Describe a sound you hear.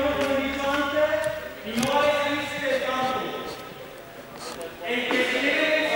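Young women talk and call out in a large echoing hall.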